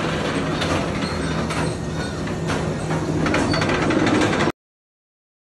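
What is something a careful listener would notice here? A roller coaster train rumbles and clatters along its track close by.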